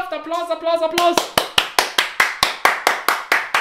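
A young man claps his hands in a quick rhythm.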